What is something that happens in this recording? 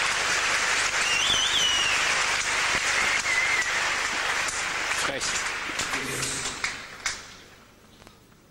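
A large crowd applauds and cheers loudly, then fades away.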